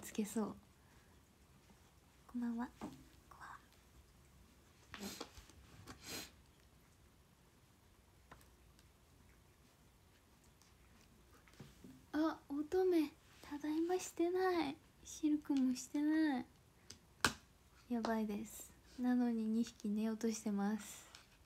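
A young woman talks softly and casually, close to the microphone.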